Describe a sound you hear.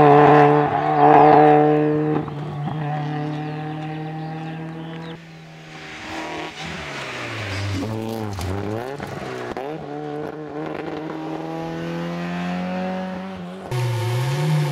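A rally car engine roars and revs hard as the car speeds away.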